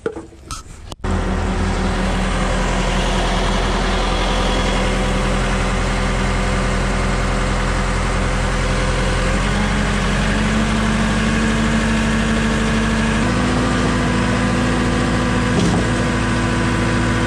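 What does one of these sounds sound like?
A large diesel engine runs loudly and steadily close by.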